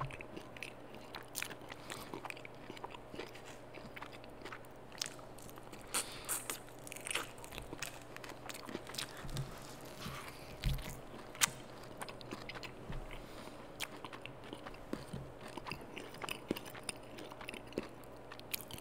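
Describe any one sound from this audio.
A man chews and bites into crunchy food close to a microphone.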